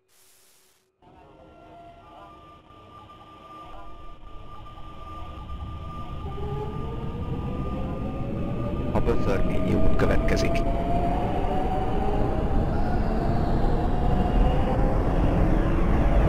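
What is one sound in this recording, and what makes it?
A train rumbles closer through a tunnel, growing steadily louder.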